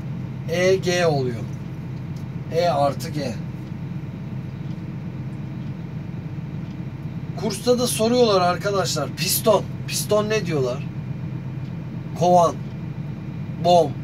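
An excavator engine hums steadily from inside the cab.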